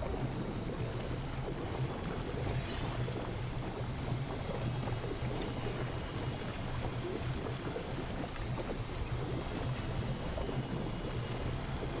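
Water rushes and roars over a spillway.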